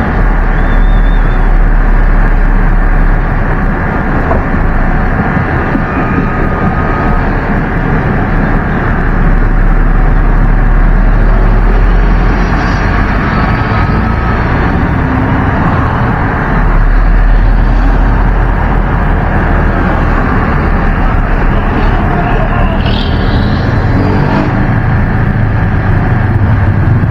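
Wind buffets the open vehicle.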